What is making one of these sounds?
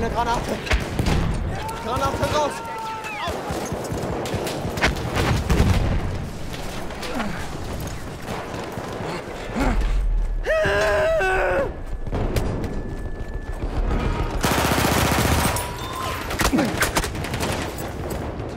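Gunshots crack and echo in rapid bursts.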